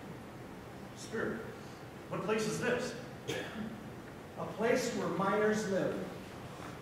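An elderly man speaks theatrically in a large hall.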